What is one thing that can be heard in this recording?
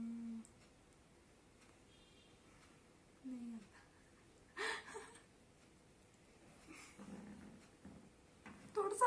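A young boy speaks softly close by.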